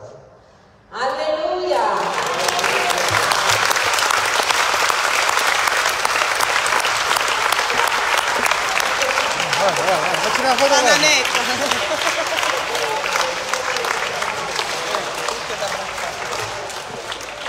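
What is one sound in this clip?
A crowd claps loudly.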